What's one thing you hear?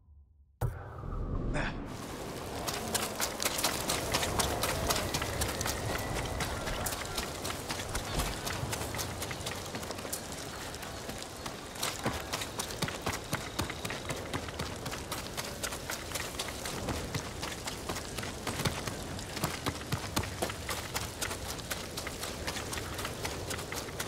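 Wind blows steadily through grass outdoors.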